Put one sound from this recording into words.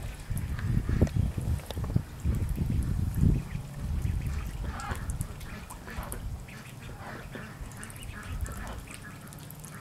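Ducklings dabble and splash in shallow water.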